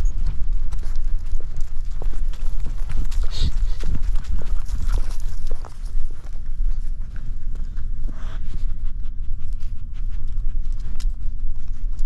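A dog's paws patter and rustle through dry leaves and grass.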